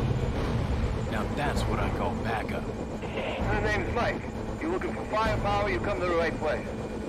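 A young man speaks tensely into a radio.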